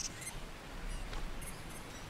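Water splashes down a small waterfall.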